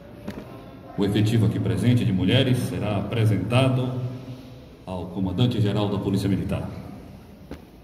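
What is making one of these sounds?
A man speaks loudly and firmly close by, in a room that echoes.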